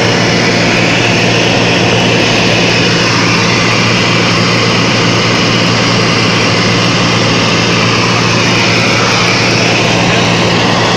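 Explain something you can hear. Wind rushes past the plane with a steady roar.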